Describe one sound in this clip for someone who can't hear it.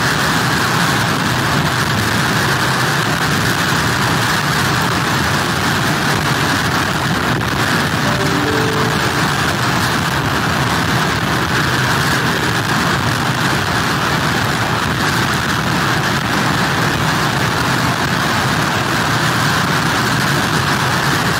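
Heavy surf crashes and roars against pier pilings.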